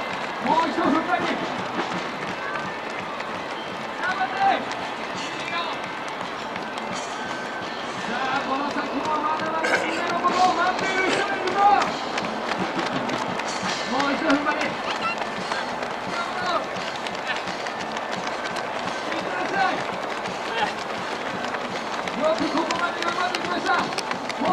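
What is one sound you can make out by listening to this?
Many running footsteps patter on pavement.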